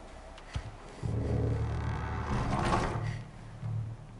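A heavy wooden door creaks and rumbles open.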